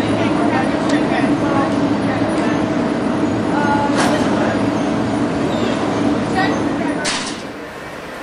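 A monorail train hums steadily in a large echoing hall.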